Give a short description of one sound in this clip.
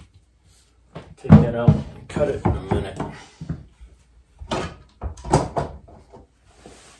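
A middle-aged man talks calmly nearby.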